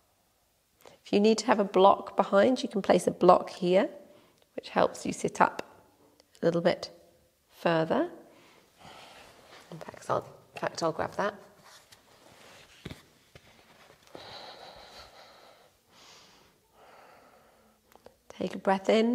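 A woman speaks calmly and clearly into a close microphone, in a lightly echoing room.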